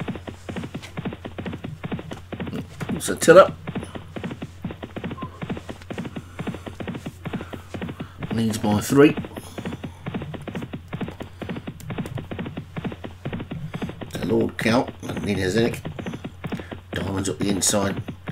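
Hooves thud rapidly on turf as horses gallop.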